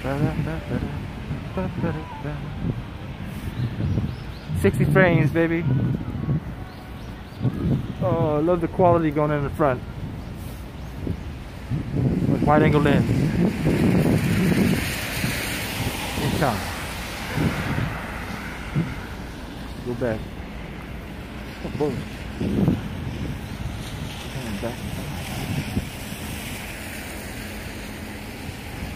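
Cars drive past on a wet road nearby.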